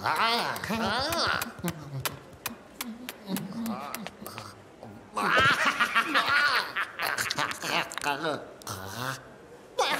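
A cartoon creature shrieks and babbles in a high, squeaky voice.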